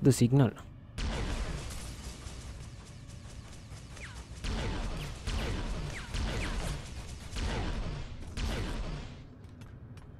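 Energy blasts fire and explosions boom in quick bursts.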